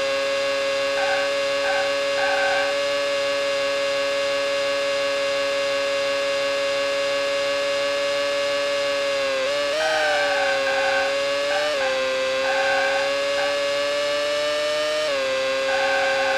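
Tyres squeal through corners.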